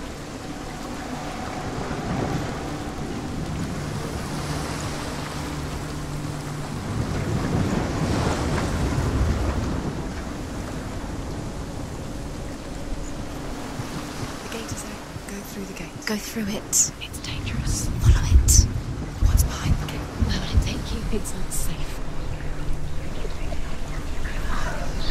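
Rain falls steadily outdoors in wind.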